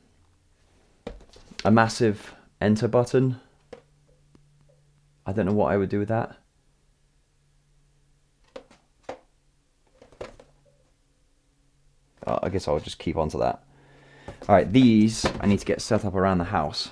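Cardboard boxes rustle and tap as they are handled.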